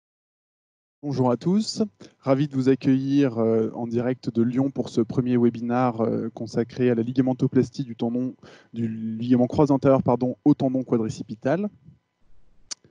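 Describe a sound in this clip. A man speaks calmly and steadily into a microphone, as if on an online call.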